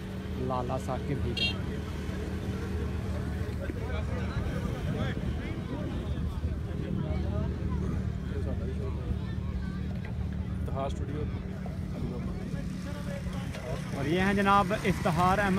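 Many men chatter and call out across an open field.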